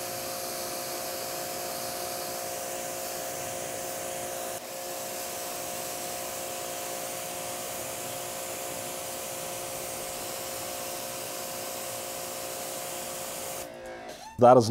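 A pressure washer sprays water onto a metal panel with a steady hiss.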